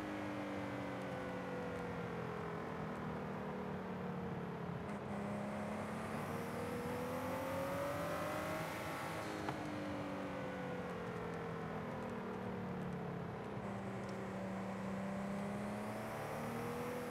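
Tyres hiss on asphalt.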